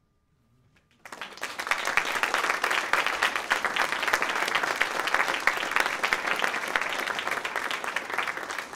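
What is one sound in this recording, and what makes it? An audience applauds loudly in a hall.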